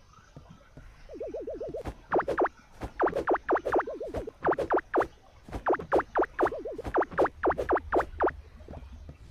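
Quick, bright game blips repeat rapidly.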